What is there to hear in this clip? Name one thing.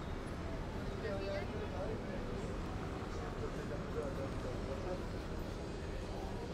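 Several people talk quietly nearby.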